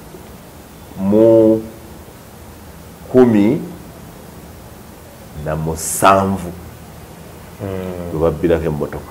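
A man speaks calmly and close, in short bursts with pauses.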